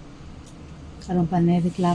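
A woman speaks briefly and close by.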